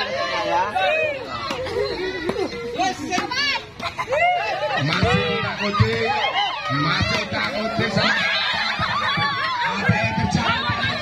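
A crowd of people shouts and cheers excitedly nearby.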